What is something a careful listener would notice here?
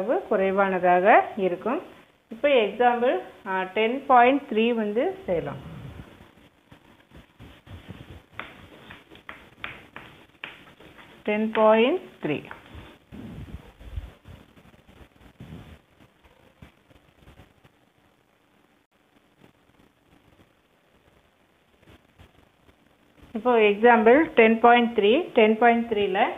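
A woman speaks clearly and steadily, as if explaining a lesson.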